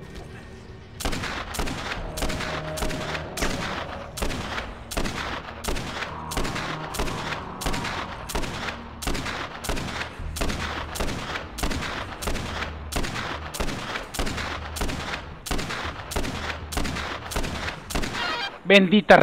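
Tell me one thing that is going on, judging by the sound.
Gunshots fire again and again in a steady, rapid series.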